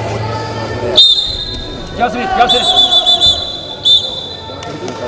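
A referee's whistle blows in short blasts.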